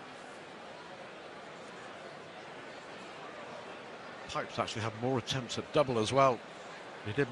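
A crowd murmurs in a large hall.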